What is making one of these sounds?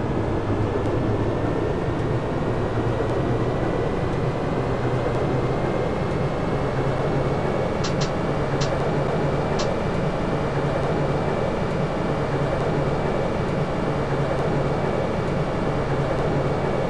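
An electric motor whines steadily.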